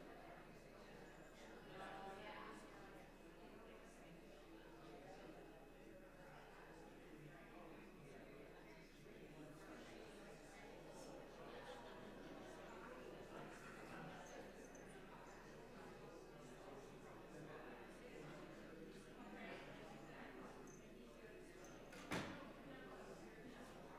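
Many men and women chat quietly at once in a large echoing hall.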